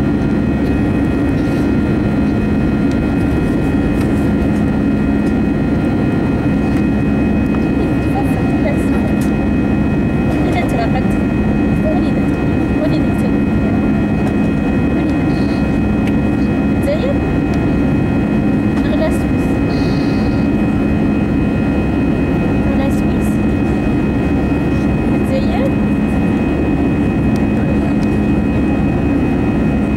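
An airplane engine drones loudly and steadily inside the cabin.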